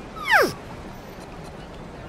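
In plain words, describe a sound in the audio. A young man groans in discomfort.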